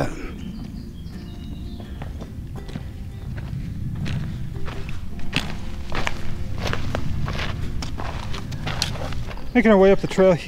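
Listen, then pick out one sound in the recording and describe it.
Boots crunch on a dirt trail as hikers walk past.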